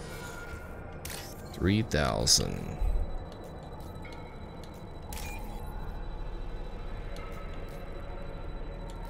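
Soft electronic clicks and blips sound now and then.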